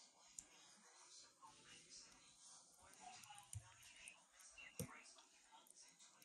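A spoon scrapes and spreads sauce softly across dough.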